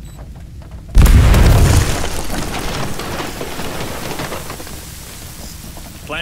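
Guns fire in a loud burst that slowly dies away.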